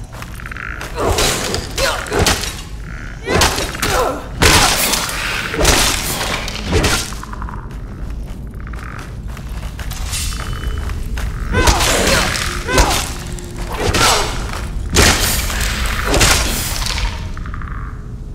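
Blades clash and strike again and again in a fierce fight.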